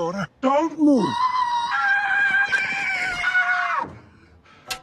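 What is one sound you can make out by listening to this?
A young man screams loudly.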